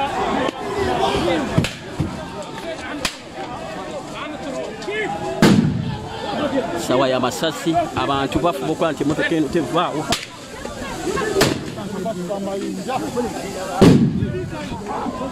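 A crowd of men and women shout and scream nearby, outdoors.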